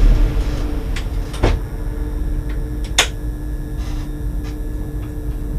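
Train wheels clack over rail joints and points.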